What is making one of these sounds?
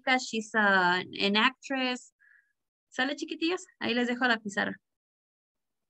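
A young woman speaks calmly and clearly through a computer microphone.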